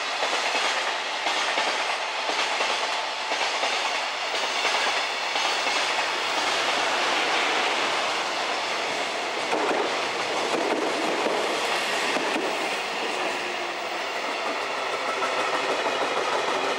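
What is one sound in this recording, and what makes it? A freight train rumbles and clatters along the tracks.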